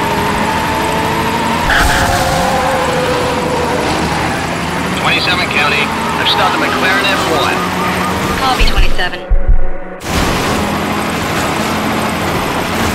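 A racing car engine roars steadily in a video game.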